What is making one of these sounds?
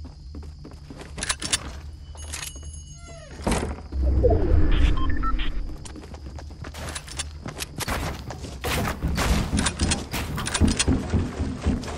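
Footsteps thud quickly on wooden floors and stairs.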